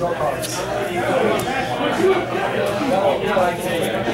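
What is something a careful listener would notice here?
A playing card slaps softly onto a mat.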